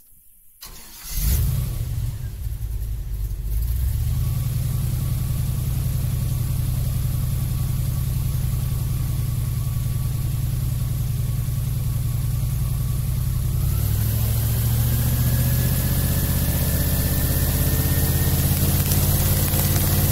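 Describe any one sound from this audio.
An airboat engine starts up and roars loudly.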